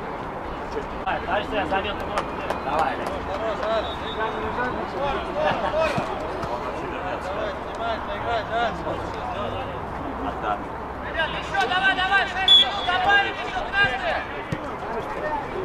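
Men shout to each other outdoors, some distance away.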